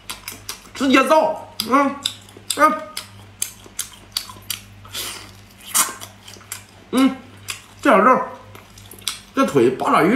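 Fried food crackles as a young man tears it apart by hand.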